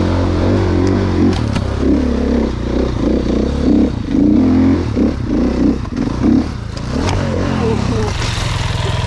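A dirt bike engine revs hard, rising and falling.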